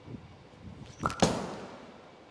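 A bowling ball thuds onto a wooden lane.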